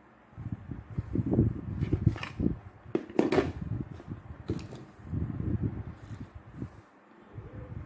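Small plastic parts click and rattle as they are handled close by.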